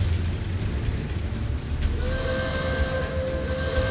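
Tank tracks clank and squeak as the tank moves.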